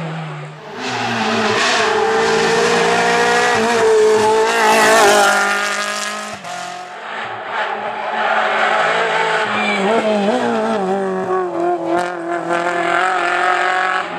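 A small four-cylinder rally hatchback revs hard and shifts through the gears.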